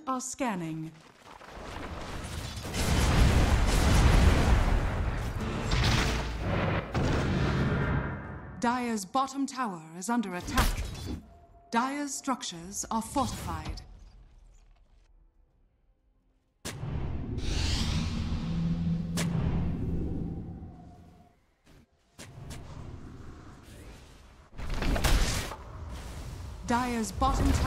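Spell blasts and weapon clashes crackle and boom in a game battle.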